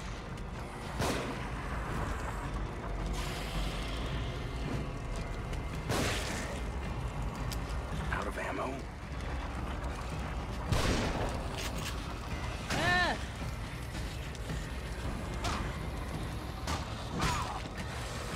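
A shotgun fires with loud bangs.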